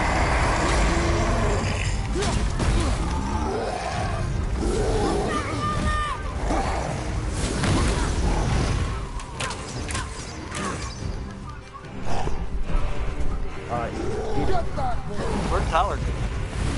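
Heavy blows thud and crash during a fight.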